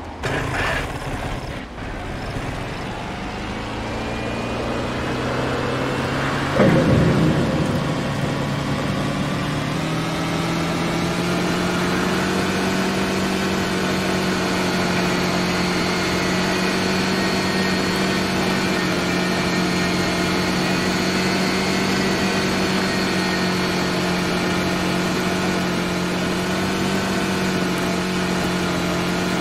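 A quad bike engine hums steadily and revs up as it speeds along.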